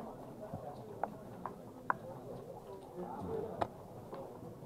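Backgammon checkers click as a hand moves them on a board.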